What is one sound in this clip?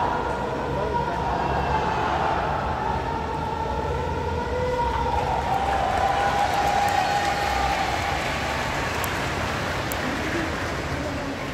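A large crowd sings and chants together in a big echoing hall.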